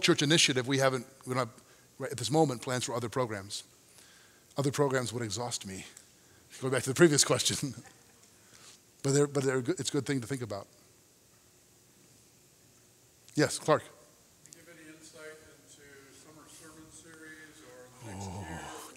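A man speaks calmly into a microphone in a large echoing hall, pausing between phrases.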